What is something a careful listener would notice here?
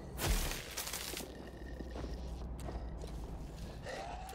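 A heavy blow lands on flesh with a wet thud.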